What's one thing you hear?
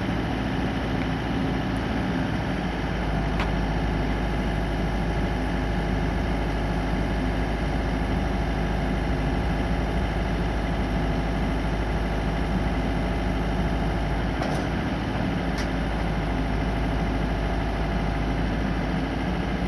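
A lift's engine hums steadily nearby.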